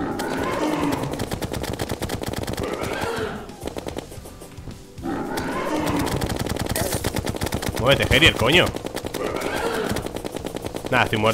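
Rapid game weapon shots patter and pop.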